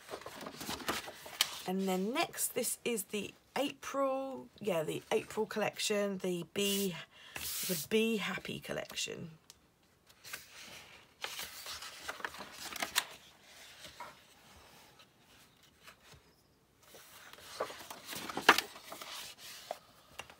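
Paper pages rustle and flap as a sketchbook is turned.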